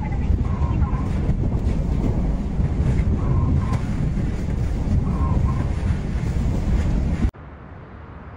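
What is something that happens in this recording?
Strong wind roars and buffets in a storm.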